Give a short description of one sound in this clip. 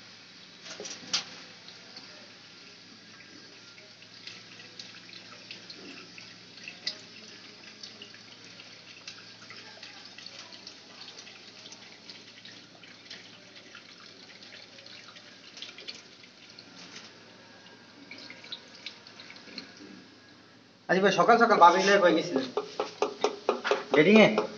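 Liquid trickles through a plastic funnel into a narrow opening.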